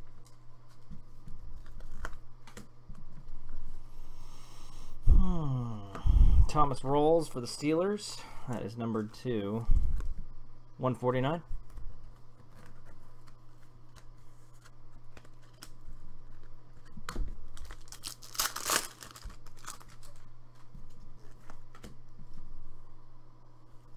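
Trading cards rustle and slap together as they are shuffled by hand.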